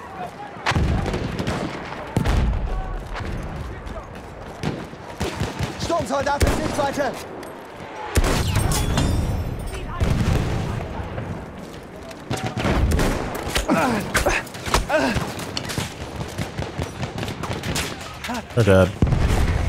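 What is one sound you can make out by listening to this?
Rifle shots fire in sharp bursts.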